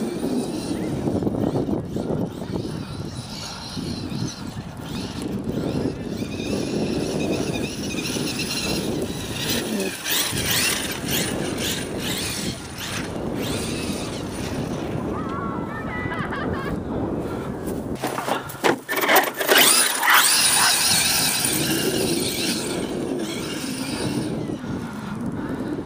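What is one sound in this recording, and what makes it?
Wind blusters across the microphone outdoors.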